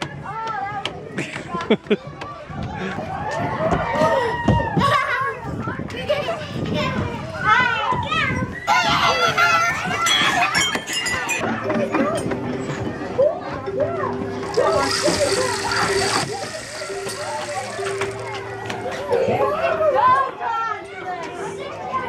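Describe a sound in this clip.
Young boys shout and talk excitedly nearby.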